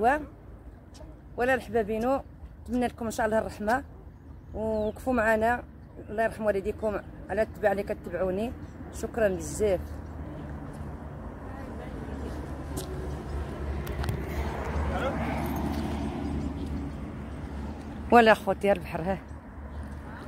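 An elderly woman speaks with animation close by, outdoors.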